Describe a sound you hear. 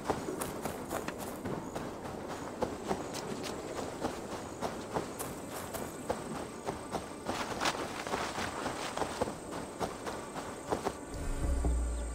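Footsteps crunch through grass and mud.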